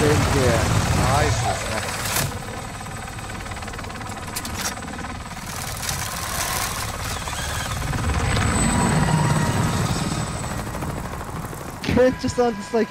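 A helicopter's rotor thuds and roars overhead.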